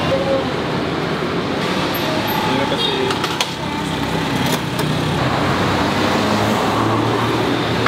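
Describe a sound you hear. A woman talks briefly across a counter.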